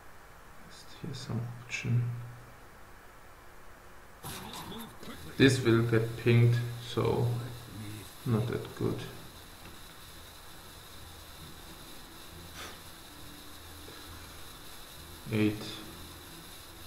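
A young man speaks briefly and calmly into a microphone.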